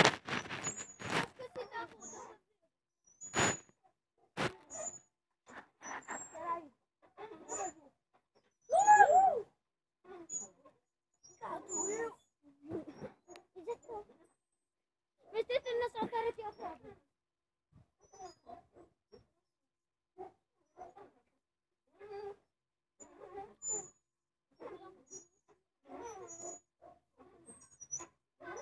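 Young children talk and shout close by.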